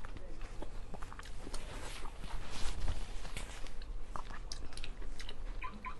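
A young woman wipes her mouth with a rustling tissue.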